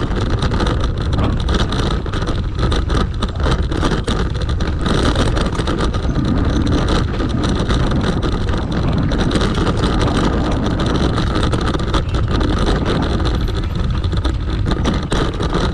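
Bicycle tyres rattle and crunch over a rough gravel trail.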